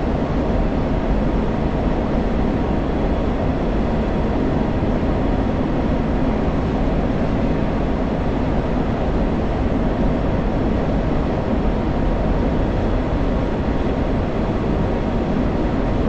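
A jet engine roars steadily inside a cockpit.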